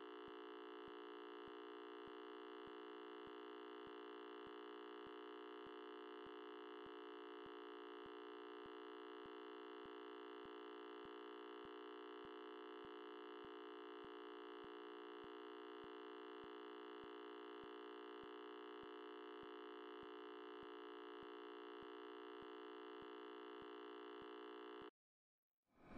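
A steady electronic test tone sounds.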